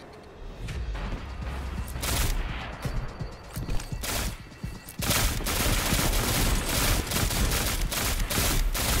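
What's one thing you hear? Rapid gunfire bursts from a rifle.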